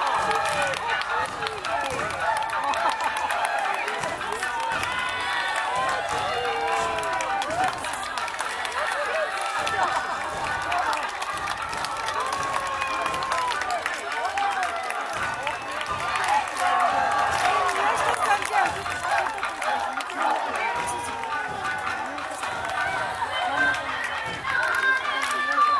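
A crowd of onlookers chatters and calls out all around, close by.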